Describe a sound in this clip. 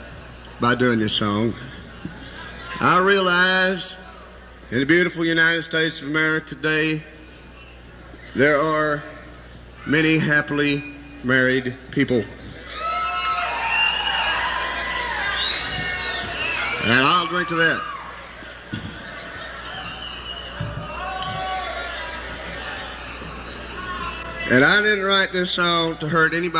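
A man sings into a microphone in short phrases.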